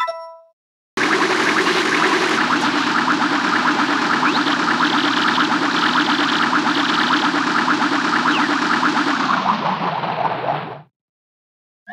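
A small flying machine's engine roars steadily, then sputters and dies away.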